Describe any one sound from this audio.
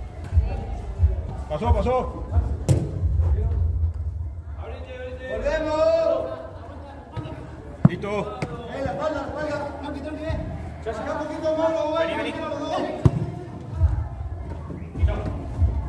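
A football thuds when kicked.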